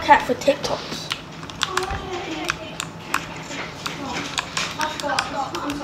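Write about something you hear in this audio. Keyboard keys click rapidly.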